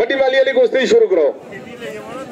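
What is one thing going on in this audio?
A man shouts loudly close by.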